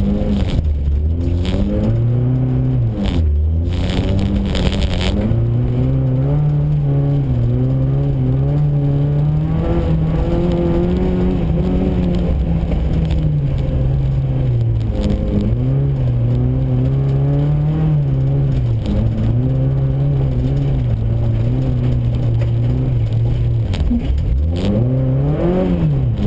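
Tyres crunch and hiss over packed snow.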